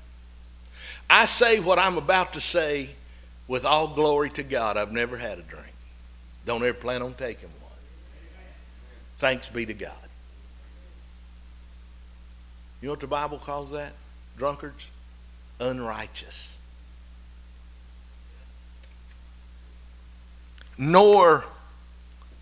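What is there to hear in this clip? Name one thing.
A middle-aged man speaks with animation through a microphone, with pauses.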